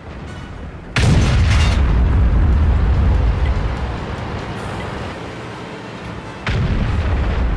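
A tank cannon fires with a loud, echoing boom.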